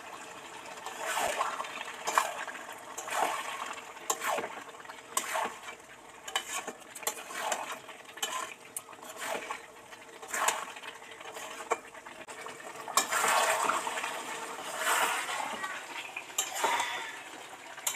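A metal spatula scrapes and stirs food in a pan.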